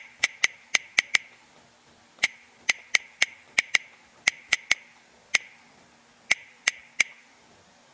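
Keyboard clicks sound in quick bursts as a phone keyboard is typed on.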